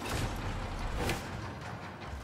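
An axe strikes metal with a sharp clang.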